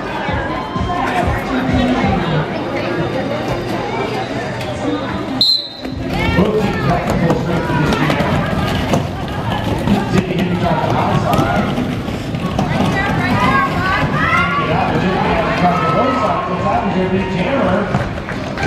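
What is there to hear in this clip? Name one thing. A crowd chatters and calls out in a large echoing hall.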